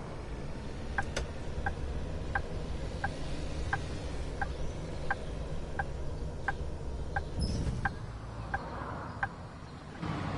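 A bus turn signal ticks in a steady rhythm.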